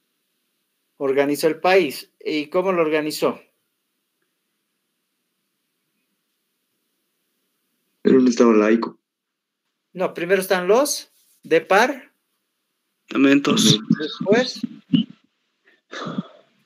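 A man speaks calmly in short bursts through an online call.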